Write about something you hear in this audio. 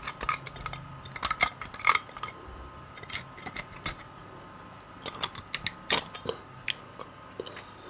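A knife scrapes against bone with sharp clicks.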